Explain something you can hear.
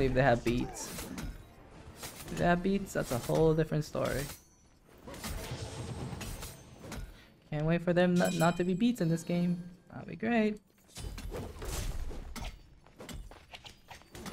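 Blades swish and clash in a fast fight.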